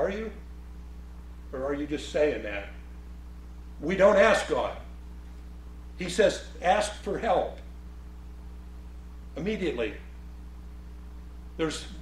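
A middle-aged man speaks with animation in short bursts, heard through a microphone.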